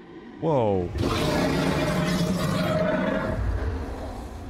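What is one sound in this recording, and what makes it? A huge lion-like beast lets out a deep, rumbling roar.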